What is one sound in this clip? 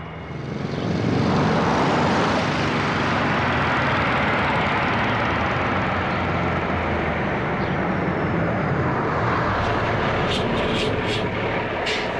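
A motorcycle engine putters along a wet street.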